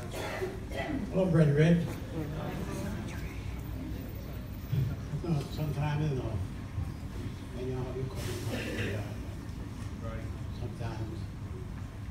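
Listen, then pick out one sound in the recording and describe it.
An elderly man speaks calmly into a microphone, heard through loudspeakers in a large echoing room.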